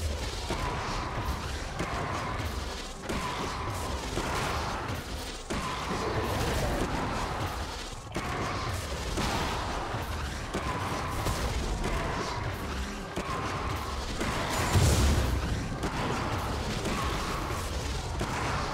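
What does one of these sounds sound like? Magic blasts and hits crackle and boom in a fast fight.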